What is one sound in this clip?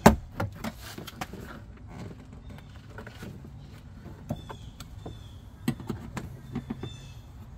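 Plastic clips click and snap as a door panel is pried loose.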